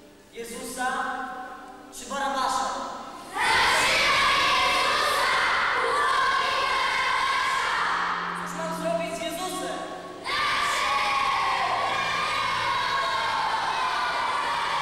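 A young boy sings in a large echoing hall.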